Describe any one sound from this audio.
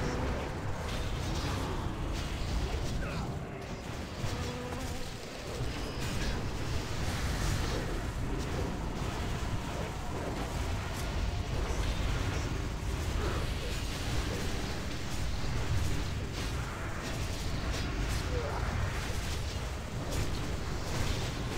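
Spells and weapon blows crash and crackle in a chaotic battle.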